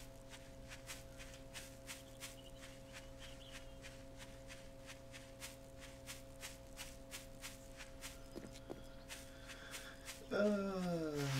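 Footsteps walk through grass.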